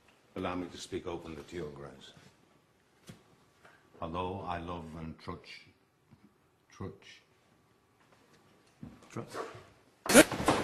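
An elderly man speaks calmly and quietly nearby.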